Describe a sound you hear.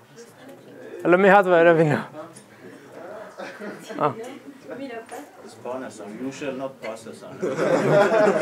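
A young man speaks to a room, heard through a microphone.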